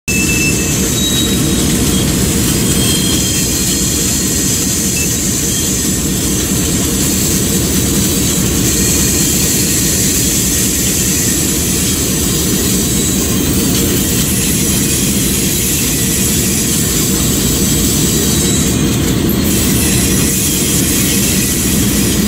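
A diesel locomotive engine rumbles steadily as the train rolls along.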